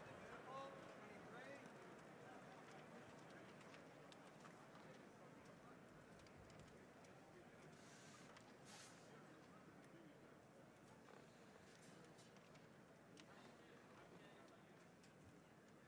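An orchestra plays softly in a large hall.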